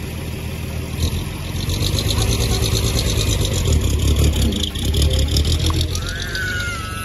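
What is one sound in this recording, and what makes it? A small steam engine chuffs rhythmically as it approaches.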